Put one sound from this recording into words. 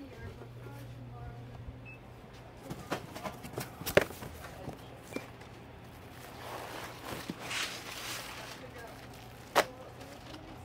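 Cardboard boxes knock and thud as they are handled.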